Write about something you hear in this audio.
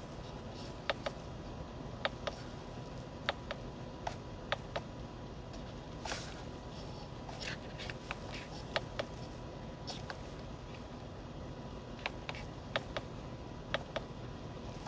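Small plastic buttons click softly, one press at a time.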